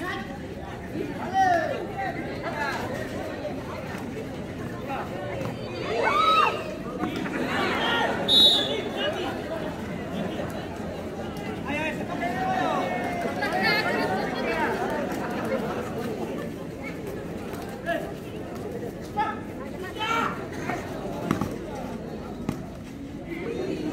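A large crowd chatters and shouts steadily outdoors.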